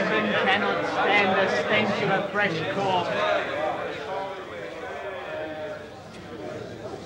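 A crowd of young men chatters and murmurs in an echoing room.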